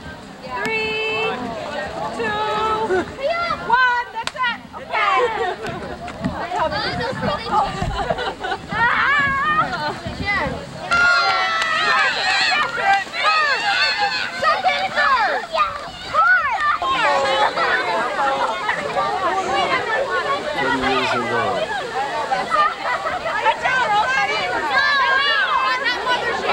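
Children shout and laugh excitedly outdoors.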